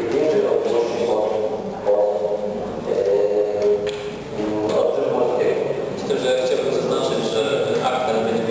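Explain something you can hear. A man speaks calmly into a microphone over loudspeakers in an echoing hall.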